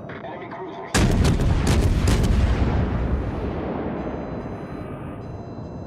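Heavy guns fire in a loud burst of booming blasts.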